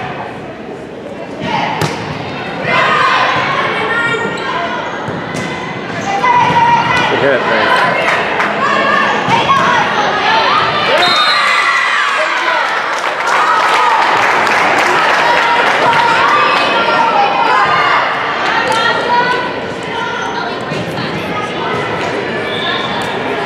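Teenage girls shout and cheer in an echoing gym.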